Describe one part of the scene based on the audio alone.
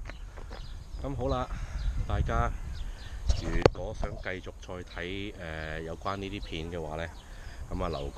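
A man talks with animation close to the microphone.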